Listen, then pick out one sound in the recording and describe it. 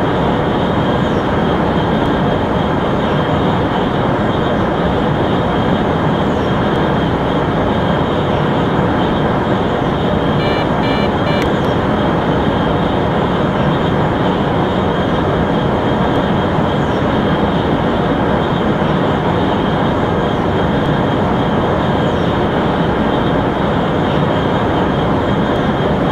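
A high-speed train rushes along the track with a steady, loud roar.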